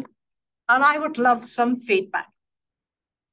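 A woman speaks clearly into a nearby microphone.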